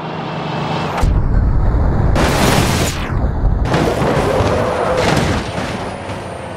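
A bus crashes with a heavy, booming impact of crumpling metal.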